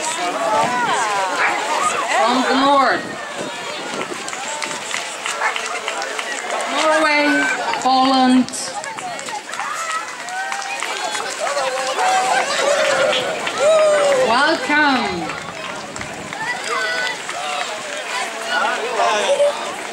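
A crowd of men and women chats as they walk past outdoors.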